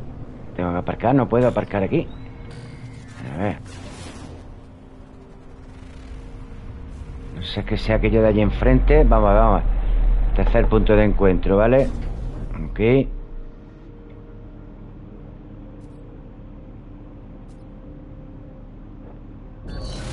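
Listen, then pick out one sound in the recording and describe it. A spaceship engine hums steadily, swelling louder for a while before easing off.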